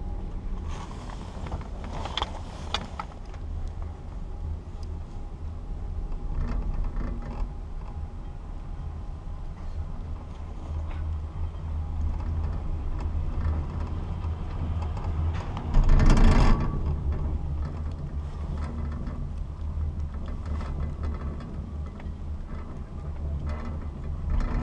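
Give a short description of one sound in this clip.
Wind rumbles steadily against a microphone outdoors.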